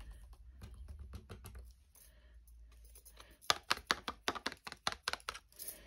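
A foam applicator dabs repeatedly on paper with soft, quick taps.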